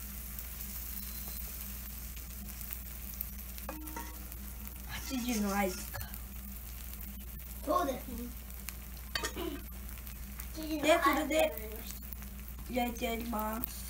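Batter sizzles softly on a hot griddle.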